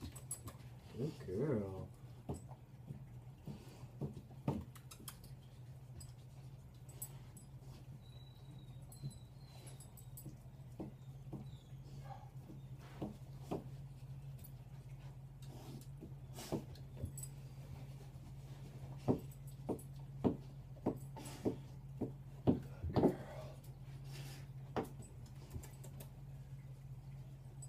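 A dog's paws thump and scrabble on the floor.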